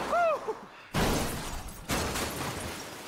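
A car crashes down onto rocks with a loud bang.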